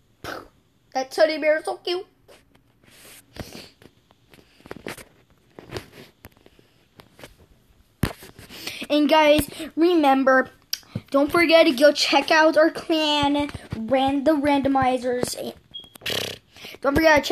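A boy talks with animation close to a microphone.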